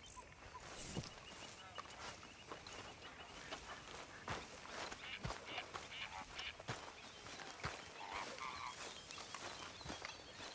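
Footsteps tread through grass and dirt.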